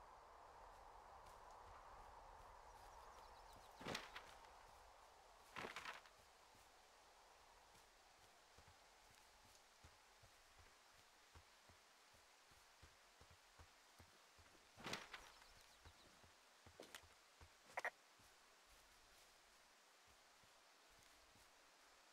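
Footsteps crunch softly through dry grass.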